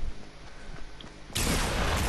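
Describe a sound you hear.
A pistol fires several shots.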